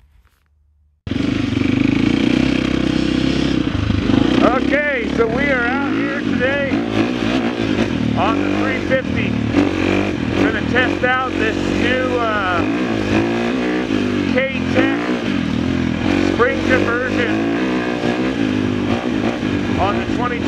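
A dirt bike engine revs up and down while riding.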